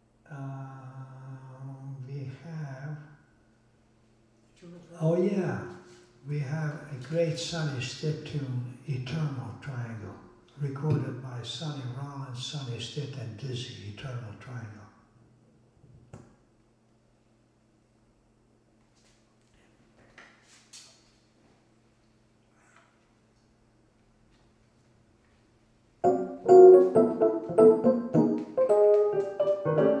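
A saxophone plays a melody.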